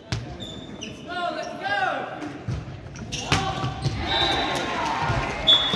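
Teenage boys shout and call out to each other nearby.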